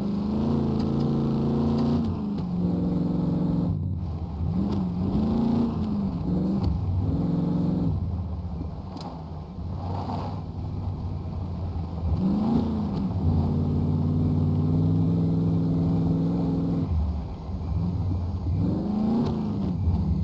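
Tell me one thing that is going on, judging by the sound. A truck engine hums and revs unevenly as the truck drives over rough ground.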